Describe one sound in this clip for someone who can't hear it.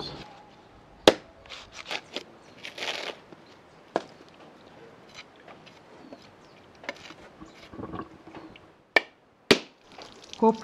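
A machete chops into coconut husk with sharp knocks.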